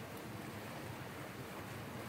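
Water rushes over rocks in a stream.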